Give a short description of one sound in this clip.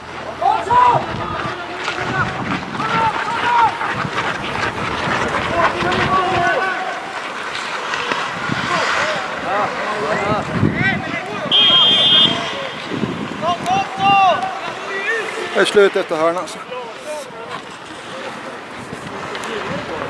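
Men shout and call to each other across an open ice rink outdoors.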